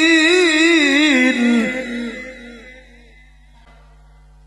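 An elderly man chants a long, wavering melodic line into a microphone, heard through a loudspeaker with a lingering echo.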